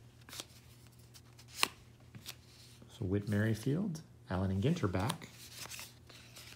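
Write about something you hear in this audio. Stiff cards slide and flick against each other.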